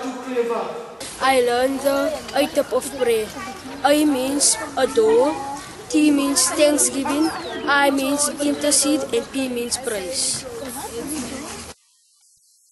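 A boy speaks into a microphone close by.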